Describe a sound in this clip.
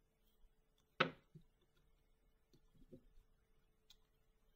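Cards tap and slide on a table.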